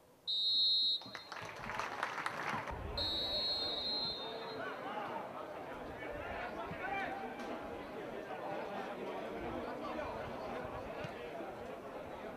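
A crowd applauds and cheers across an open stadium.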